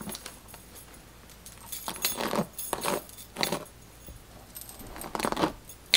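A hairbrush swishes through hair in quick strokes.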